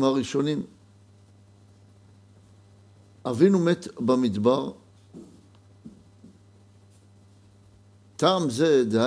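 A middle-aged man speaks calmly and slowly into a close microphone, pausing between phrases.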